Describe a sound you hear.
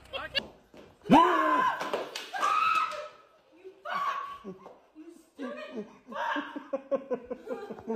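A woman shrieks and laughs loudly.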